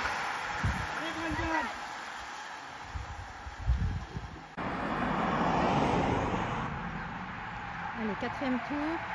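A man shouts out from the roadside.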